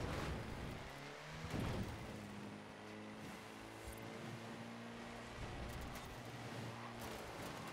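A jeep engine drones steadily as it drives.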